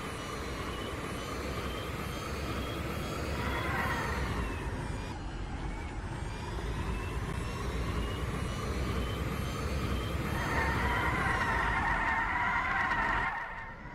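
A car engine hums steadily and rises and falls in pitch as the car speeds up and slows down.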